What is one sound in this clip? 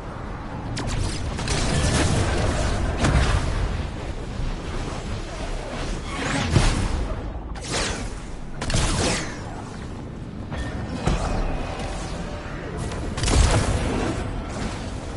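Wind rushes past in loud, swooshing gusts.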